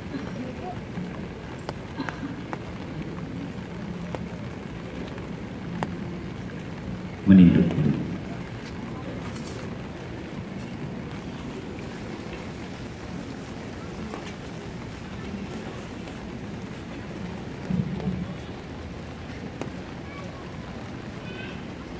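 Rain patters steadily on many umbrellas outdoors.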